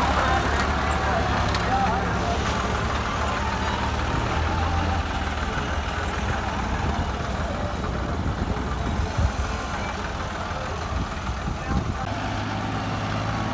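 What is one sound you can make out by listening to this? A three-cylinder diesel tractor labours as it pulls a loaded trailer.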